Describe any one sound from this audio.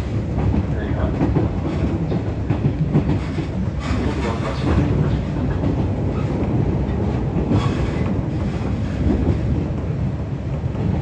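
Rain patters on a train window.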